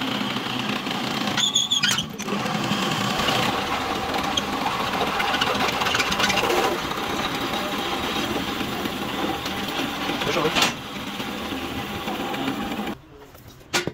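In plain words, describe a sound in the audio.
A drill press bores through steel.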